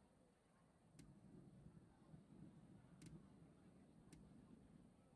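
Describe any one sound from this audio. A soft menu click sounds a few times.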